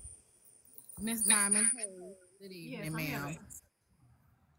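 A young woman speaks close to a microphone, with feeling.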